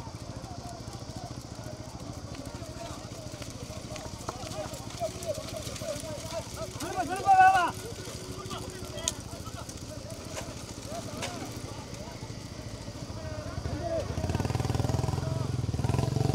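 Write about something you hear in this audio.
A crowd of men shout and call out outdoors.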